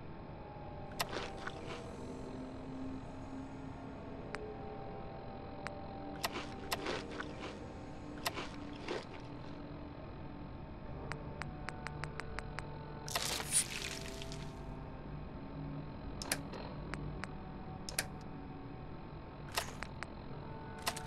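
Short electronic clicks tick again and again as menu items are scrolled through.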